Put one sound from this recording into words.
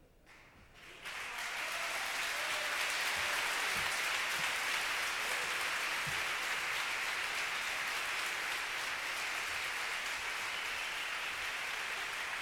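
An audience claps and cheers loudly in a large echoing hall.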